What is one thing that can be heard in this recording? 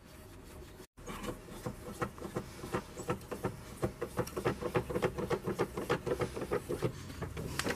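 A scissor jack crank turns with rapid metallic clicks.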